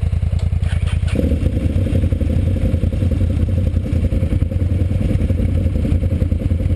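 A quad bike engine rumbles loudly up close.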